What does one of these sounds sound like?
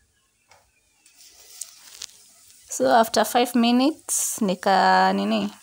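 Beans rattle and slide in a metal frying pan as it is shaken.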